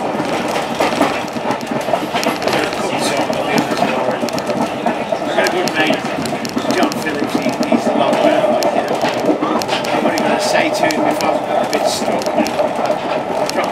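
A train rumbles steadily along the tracks, with clicks and rattles from the wheels.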